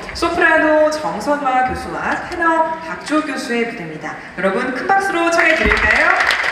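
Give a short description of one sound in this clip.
A young woman speaks calmly into a microphone in a large hall.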